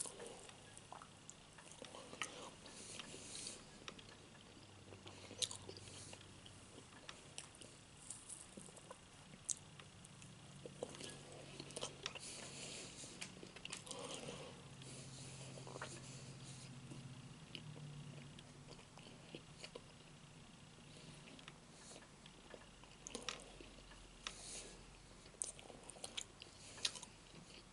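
A man chews food, smacking loudly close by.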